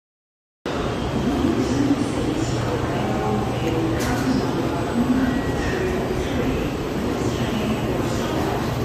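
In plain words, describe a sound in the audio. A crowd of men and women murmur nearby in a large echoing hall.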